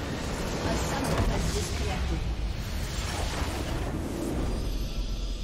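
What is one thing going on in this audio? A loud magical blast booms as a structure is destroyed.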